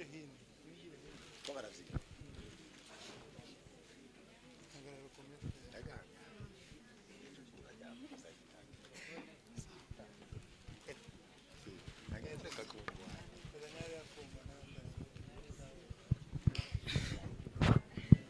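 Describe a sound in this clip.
A crowd murmurs softly in the background.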